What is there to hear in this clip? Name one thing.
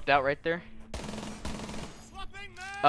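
A gun fires a short burst at close range.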